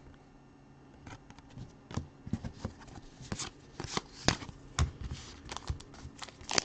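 Trading cards rustle and tap as they are shuffled by hand.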